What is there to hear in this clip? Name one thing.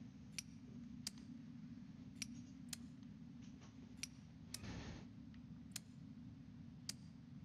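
Small metal switches on a padlock click sharply into place, one at a time.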